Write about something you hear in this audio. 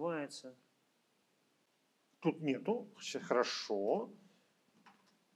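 A middle-aged man speaks calmly through a microphone on an online call.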